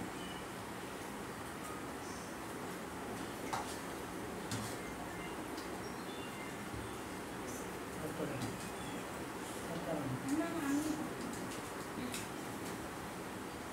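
Cutlery and dishes clink softly.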